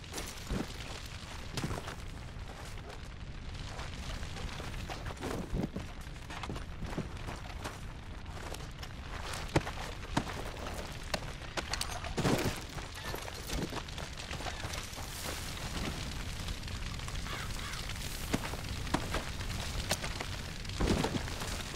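Footsteps tread on grass and dirt.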